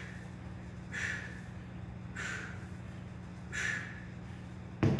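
A man exhales forcefully with each lift.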